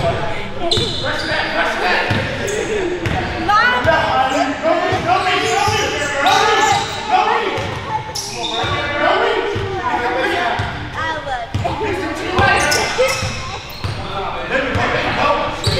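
A basketball bounces with dull thumps on a wooden floor.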